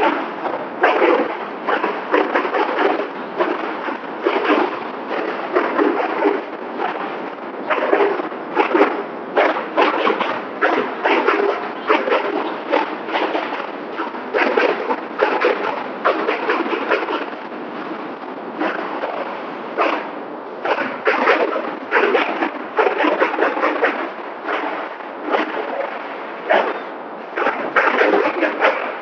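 A large group of frame drums beats together in a loud, fast rhythm, echoing in a big hall.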